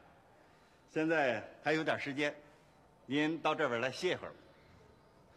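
A man speaks cheerfully and laughs close by.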